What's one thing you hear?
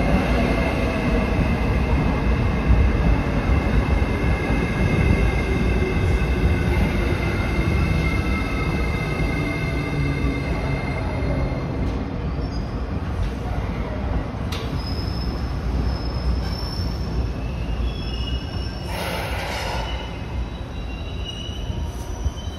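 An electric express train pulls out and rolls past.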